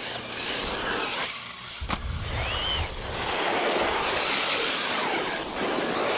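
A small electric motor whines and revs as a toy car races.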